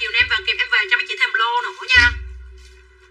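A young woman speaks briefly and with animation, close by.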